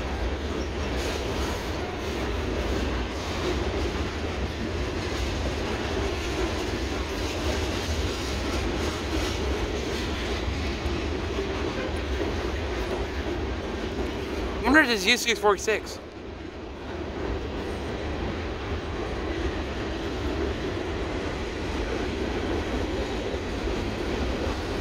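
Train wheels clatter rhythmically on the rails.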